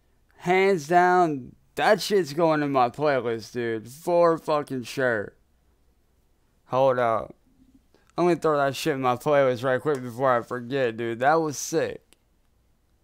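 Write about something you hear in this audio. A man talks into a close microphone, with animation.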